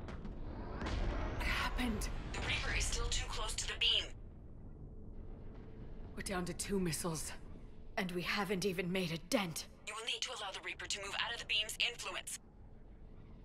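A woman's voice speaks evenly through a radio.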